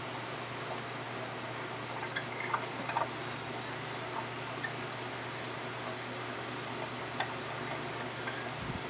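Wet clay squelches softly under hands.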